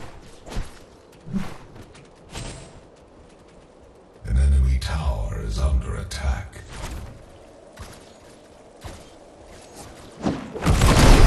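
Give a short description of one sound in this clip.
Sharp weapon swings and hits crack in quick bursts.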